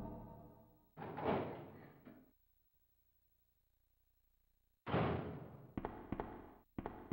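A heavy metal door creaks open with a loud clank.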